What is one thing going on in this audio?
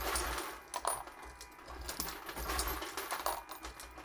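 A metal press clanks as a lever is pulled.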